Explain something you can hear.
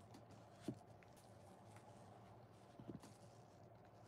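Soft sponges are set down with light thuds.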